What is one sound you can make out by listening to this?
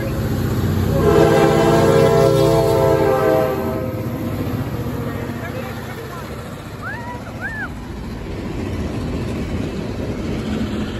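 Train wheels clatter and squeal along the rails.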